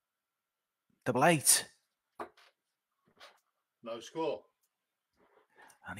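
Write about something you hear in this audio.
Steel-tip darts thud into a bristle dartboard.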